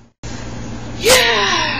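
A woman screams loudly and shrilly close by.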